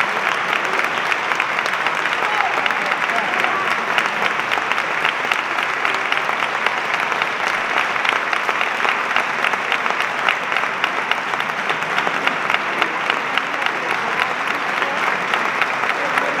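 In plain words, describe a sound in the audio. An audience claps steadily in a reverberant hall.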